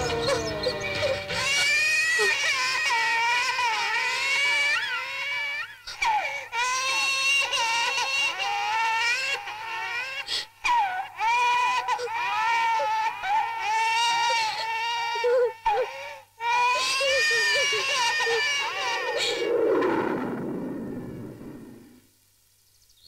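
A young woman sings a flowing, melodic song.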